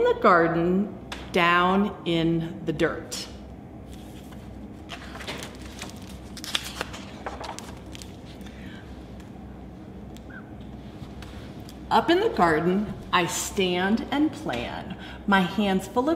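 A woman reads aloud with animation close by.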